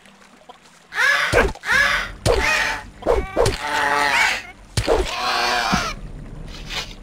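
A sword swings and strikes a creature.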